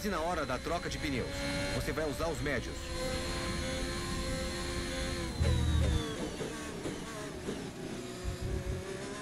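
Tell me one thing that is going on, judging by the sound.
A racing car engine screams, its pitch climbing and dropping quickly with each gear change.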